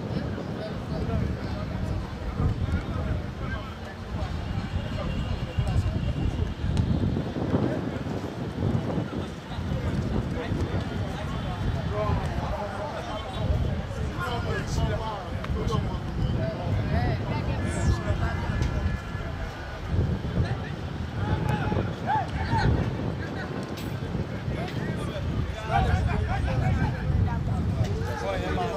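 Young men shout to one another from across an open field.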